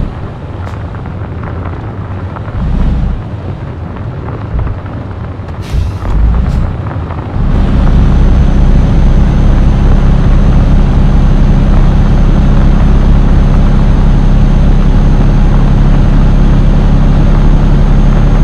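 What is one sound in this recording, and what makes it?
A diesel truck engine rumbles as it drives.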